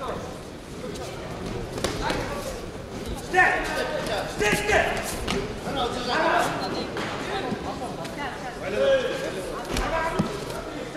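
Bare feet thump and shuffle on a mat.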